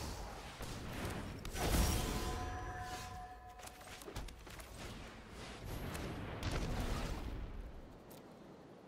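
Magical whooshing and chiming effects sound as cards are played.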